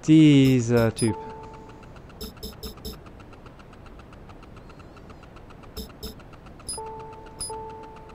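Short electronic menu beeps sound one after another.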